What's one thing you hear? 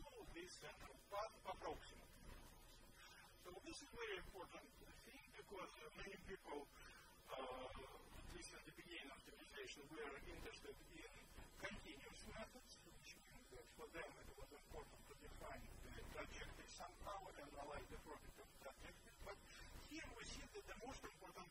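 A man lectures calmly through a microphone in a room with a slight echo.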